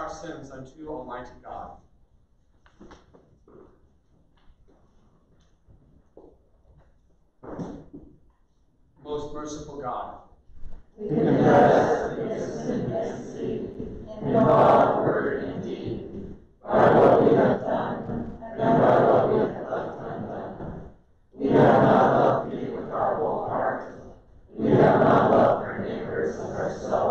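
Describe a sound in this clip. A man reads aloud through a microphone in an echoing hall.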